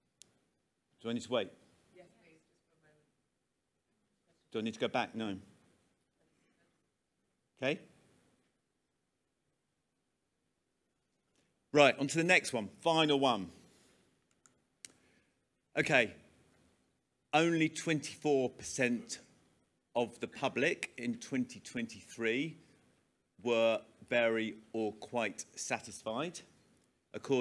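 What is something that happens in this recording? A man speaks to an audience through a microphone, in short bursts with long pauses.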